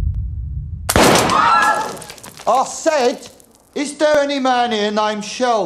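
A man shouts loudly and angrily.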